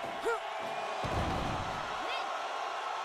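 A heavy body slams onto a wrestling mat with a deep thud.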